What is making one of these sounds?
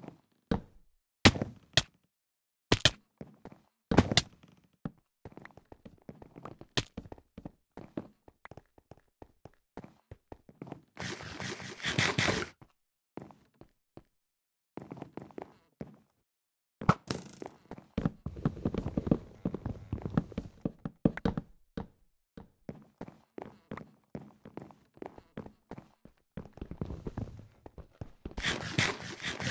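Blocks are placed with quick soft knocks.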